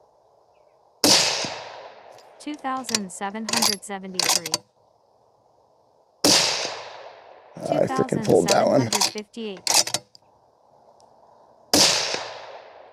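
A rifle fires loud shots that echo outdoors.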